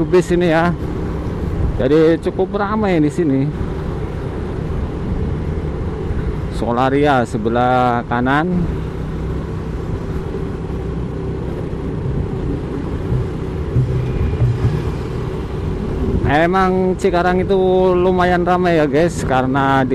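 Wind rumbles past while riding.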